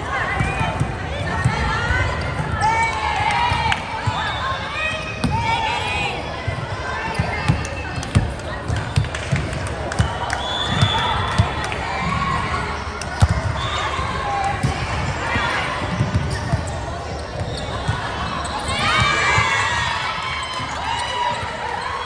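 Young women call out and chatter in a large echoing hall.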